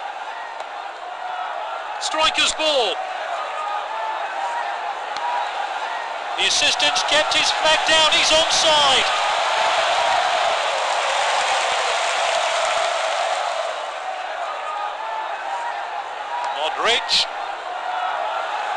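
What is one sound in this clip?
A large stadium crowd roars steadily, swelling louder for a while.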